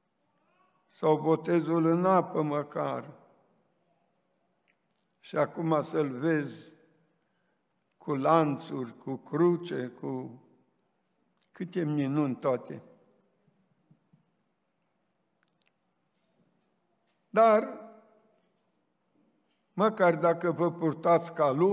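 An elderly man speaks slowly and solemnly into a microphone, with long pauses.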